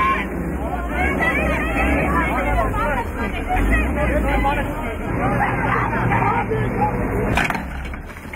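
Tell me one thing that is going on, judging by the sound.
A crowd of men and women talk and shout excitedly nearby.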